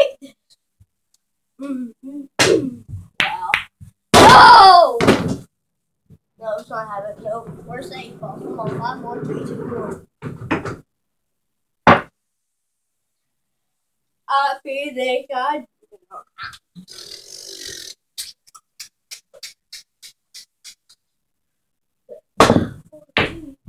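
Pool balls click sharply against each other on a table.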